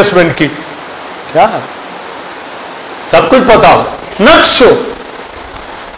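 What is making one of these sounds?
An older man preaches with emphasis into a microphone, heard through loudspeakers in a large room.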